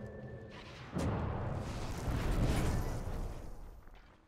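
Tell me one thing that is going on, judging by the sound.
A magic blast bursts with a rushing whoosh.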